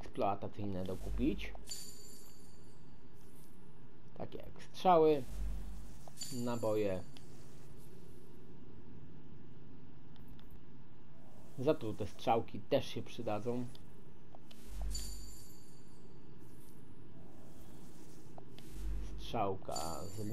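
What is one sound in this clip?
Short chimes and whooshes sound as items are bought in a game menu.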